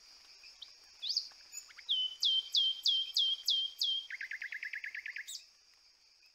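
A bird calls with loud, repeated whistles that drop in pitch, then a fast chattering trill.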